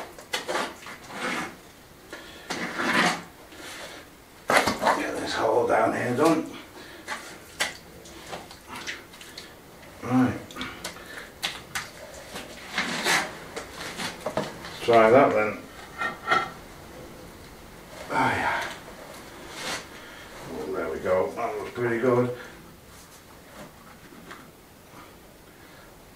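A trowel scrapes and clinks against mortar and tile.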